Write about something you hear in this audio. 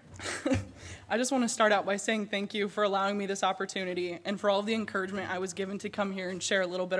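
A young woman speaks calmly into a microphone over a loudspeaker in a large hall.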